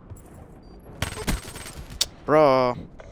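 Gunshots fire in a quick burst.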